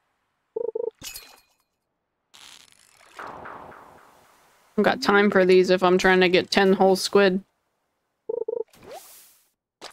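A fishing line is cast and the float plops into water.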